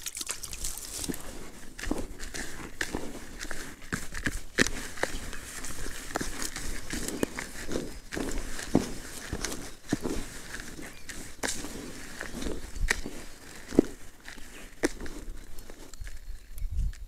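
A hand rakes and squeezes crumbly ground bait in a plastic bucket.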